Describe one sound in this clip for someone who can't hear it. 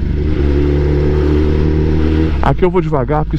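A motorcycle engine idles with a low rumble.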